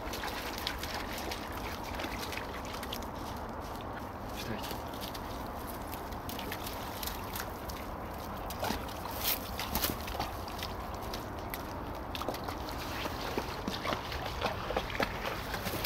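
A dog rustles through pine branches and dry undergrowth.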